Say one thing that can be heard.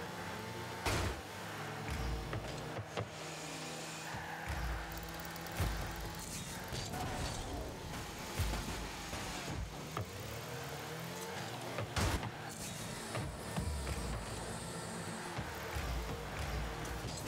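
Game car engines hum and roar steadily.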